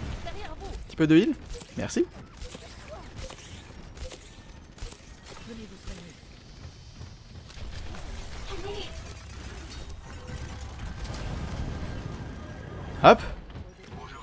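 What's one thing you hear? Energy blasts whoosh and zap in a video game.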